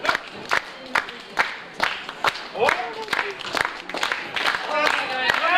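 A crowd claps in a steady rhythm.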